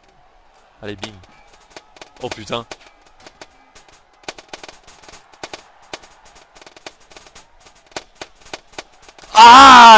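Rifle shots crack one after another.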